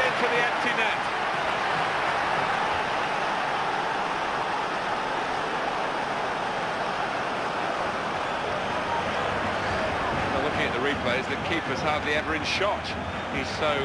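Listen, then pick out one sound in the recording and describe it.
A large crowd roars and cheers loudly in a stadium.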